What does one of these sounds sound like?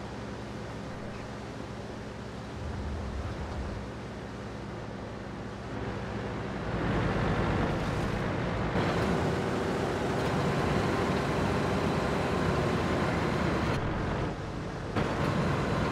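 A heavy tank engine rumbles and grows louder as the tank drives off.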